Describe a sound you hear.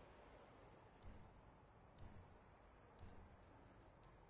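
Short game menu clicks sound.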